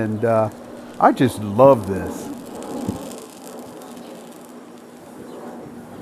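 Molten metal trickles and sizzles softly into a mold.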